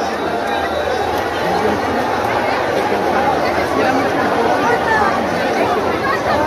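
A large crowd of men shouts and chatters loudly outdoors.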